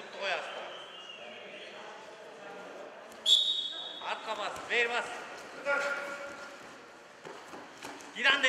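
Spectators shout encouragement loudly in an echoing hall.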